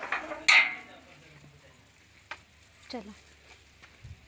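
A metal door latch clicks and rattles.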